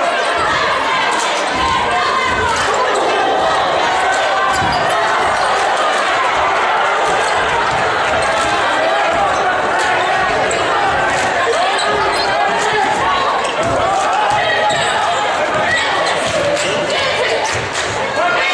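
A crowd of spectators cheers and chatters loudly in an echoing gym.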